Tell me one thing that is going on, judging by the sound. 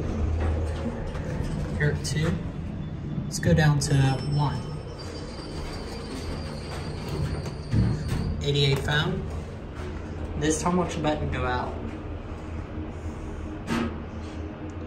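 An elevator hums steadily as it runs.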